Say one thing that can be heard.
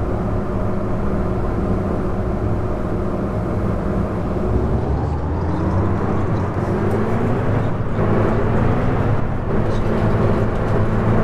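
A diesel city bus engine drones and rises in pitch as the bus speeds up.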